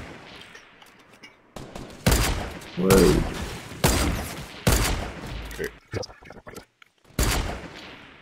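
A rifle fires single loud shots.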